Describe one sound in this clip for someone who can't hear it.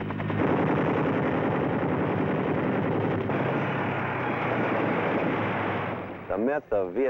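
A helicopter's engine and rotor drone steadily.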